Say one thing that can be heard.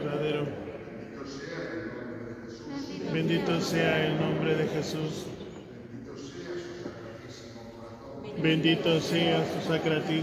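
A man sings a slow chant with a long echo.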